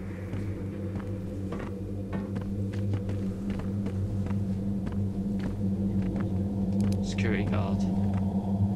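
Footsteps tap on a hard floor in a quiet, echoing space.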